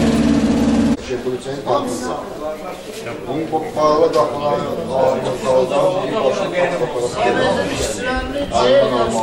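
A man talks into a phone nearby.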